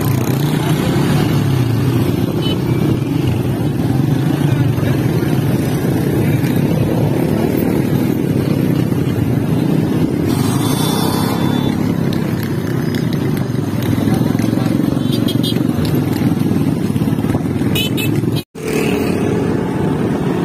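Motorcycle engines rumble and putter close by.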